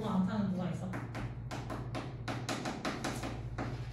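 Chalk taps and scrapes on a blackboard in quick strokes.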